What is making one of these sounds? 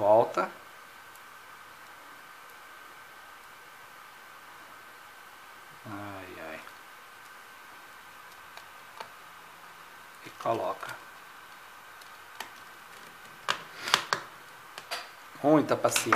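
A small screwdriver turns screws with faint clicks.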